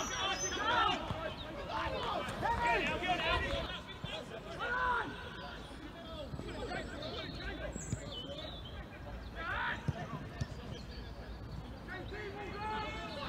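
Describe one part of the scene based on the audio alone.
Men shout and call out outdoors across a playing field.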